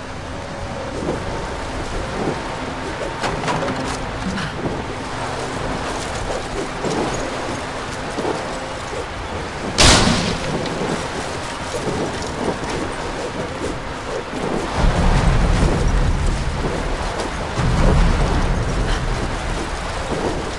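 Wood cracks and splinters as a structure breaks apart.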